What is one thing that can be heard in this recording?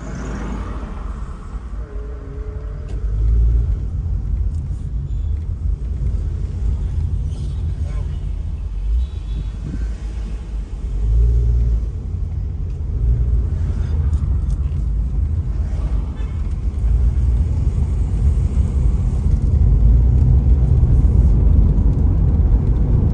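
A car engine hums steadily from inside the vehicle.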